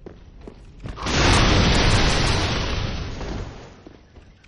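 A fiery explosion roars loudly.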